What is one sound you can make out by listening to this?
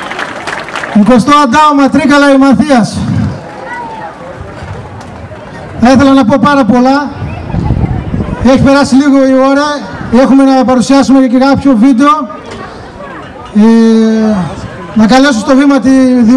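A man sings loudly into a microphone, in long held phrases with pauses between them.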